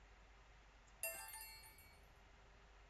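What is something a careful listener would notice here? A soft game chime rings as tiles clear.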